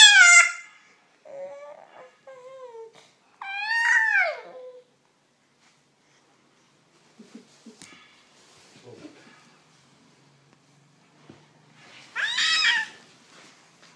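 A baby cries in high wails close by.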